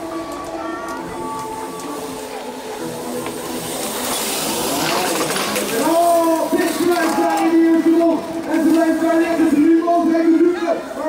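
A crowd of spectators cheers and shouts from a distance.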